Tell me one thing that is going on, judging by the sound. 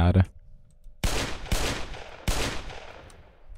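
A revolver fires two loud shots.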